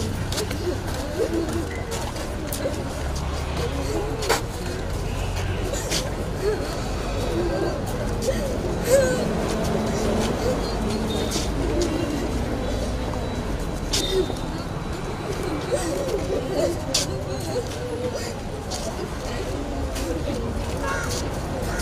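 A crowd of men and women murmur and talk quietly nearby.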